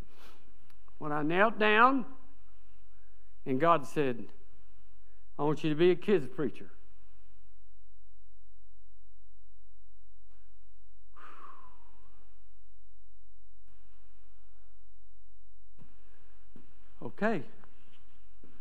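An elderly man speaks with feeling in short bursts, heard through a microphone in a large room.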